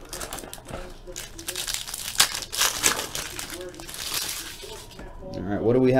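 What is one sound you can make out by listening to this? Plastic wrapping crinkles as hands tear it off a box.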